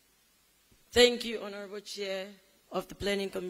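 Another man speaks through a microphone in a large echoing hall.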